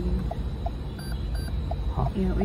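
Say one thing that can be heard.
A buzzer beeps twice, faintly.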